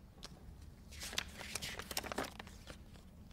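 Paper rustles and crinkles in someone's hands.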